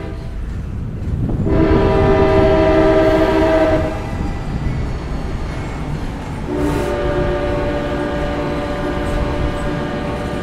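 A train approaches and rumbles loudly past.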